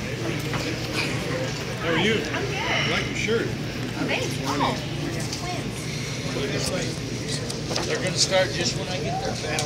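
A crowd murmurs and chatters in a busy indoor space.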